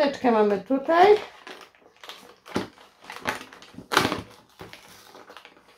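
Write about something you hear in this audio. Paper rustles as a package is handled.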